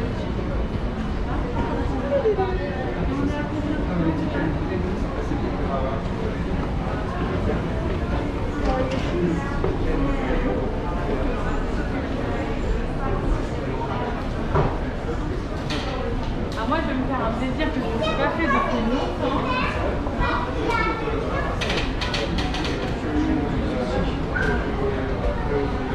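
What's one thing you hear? A moving escalator hums and rumbles.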